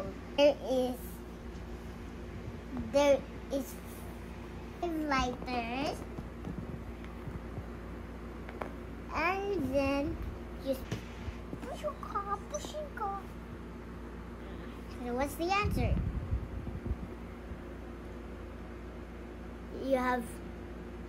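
A young child speaks close by in short bursts.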